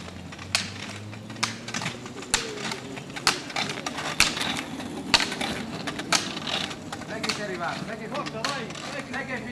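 Ski poles click sharply on asphalt in a steady rhythm.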